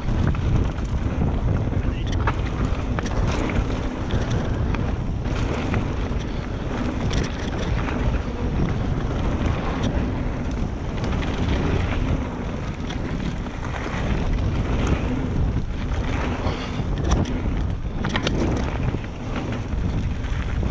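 A bicycle's frame and chain clatter and knock over bumps.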